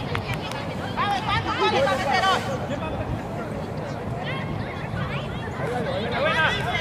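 Children shout excitedly nearby outdoors.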